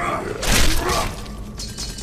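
A blade strikes hard in a fight.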